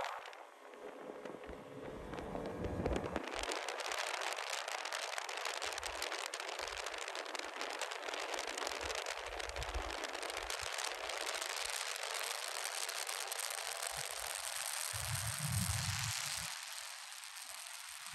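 Water hisses and sprays behind a speeding boat.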